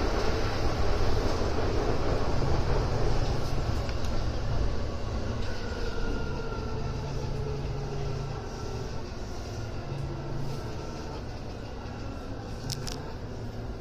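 An electric commuter train's motors whine rising in pitch as it pulls away.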